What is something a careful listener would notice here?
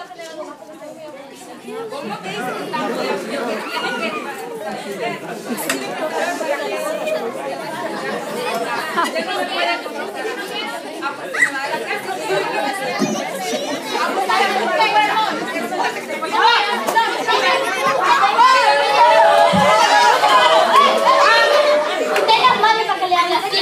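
Many children chatter and call out in a room that echoes a little.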